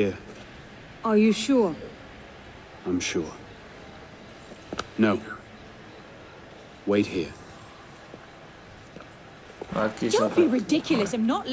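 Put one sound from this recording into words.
A man speaks calmly in reply.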